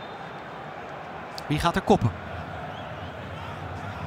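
A football is kicked hard in an empty, echoing stadium.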